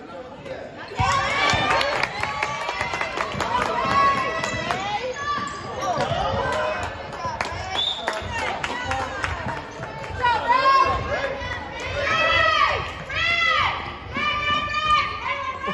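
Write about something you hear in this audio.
Sneakers squeak sharply on a wooden floor in an echoing gym.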